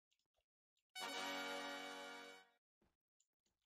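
A bright game jingle plays.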